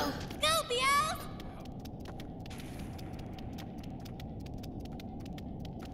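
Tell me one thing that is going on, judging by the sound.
Light footsteps run along a stone floor.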